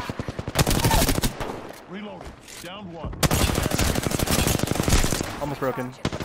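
Rapid gunfire rattles loudly from a video game.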